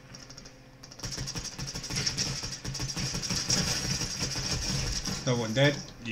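Rapid rifle gunfire rattles.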